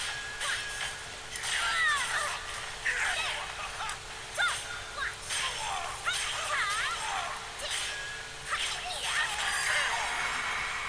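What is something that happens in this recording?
Swords clash and strike with sharp ringing hits.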